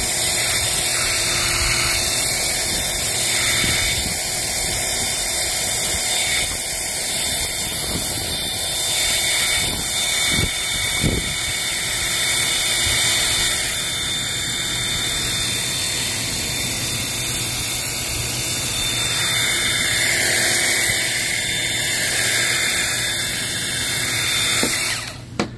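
A pressure washer sprays water hard against a metal panel with a loud steady hiss.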